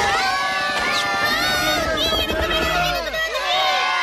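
A crowd of people screams and shouts in panic.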